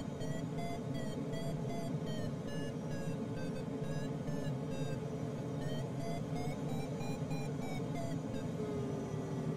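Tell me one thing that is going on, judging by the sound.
Air rushes steadily past a glider's cockpit.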